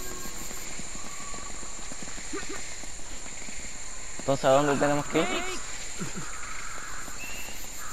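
Footsteps run through undergrowth.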